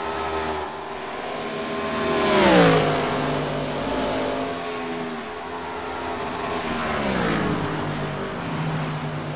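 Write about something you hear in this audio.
Race car engines roar at high speed.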